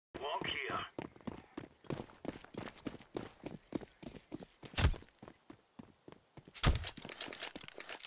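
Footsteps run on stone in a video game.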